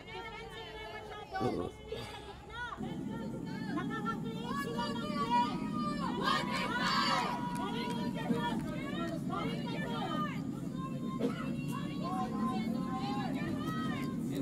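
A group of young men shout and cheer across an open field in the distance.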